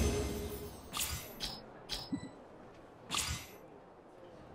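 Short bright whooshing chimes sound as game rewards pop up.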